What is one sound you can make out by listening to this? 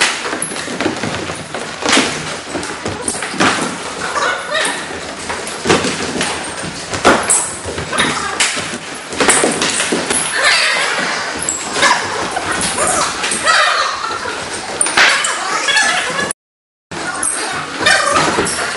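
Footsteps shuffle and squeak on a wooden floor in a large echoing hall.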